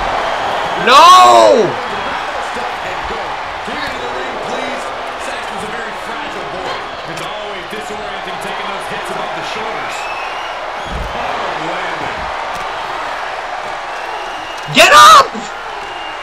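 A man shouts loudly in excitement.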